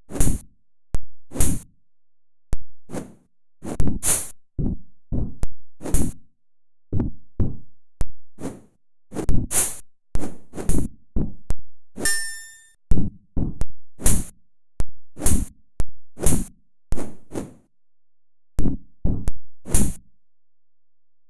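Game sound effects of swords clashing and thudding come in quick, repeated bursts.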